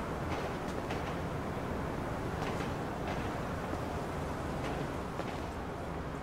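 Footsteps tread on pavement.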